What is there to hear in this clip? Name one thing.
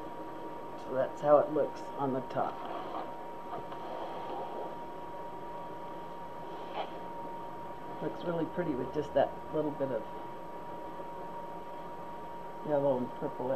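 An elderly woman talks close to a microphone.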